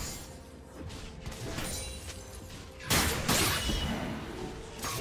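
Fantasy battle effects whoosh and crackle in quick bursts.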